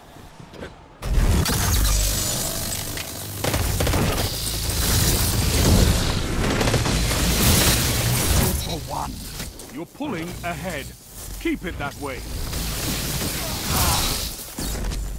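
Electric blasts from a video game crackle and sizzle.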